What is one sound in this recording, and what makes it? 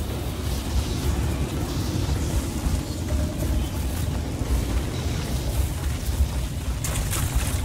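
A motorbike engine rumbles steadily as it rides along.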